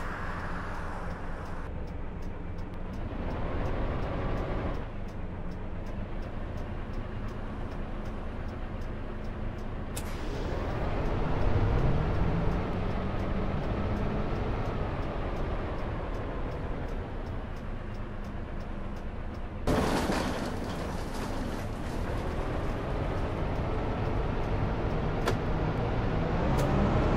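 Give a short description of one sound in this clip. A bus engine idles, then revs up and pulls away.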